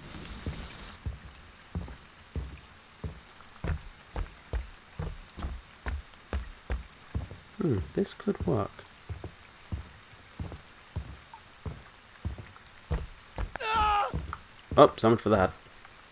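Heavy footsteps thud slowly on wooden floorboards.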